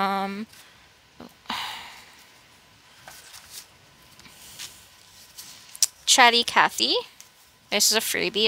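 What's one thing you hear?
Paper bills rustle softly as they are handled and counted.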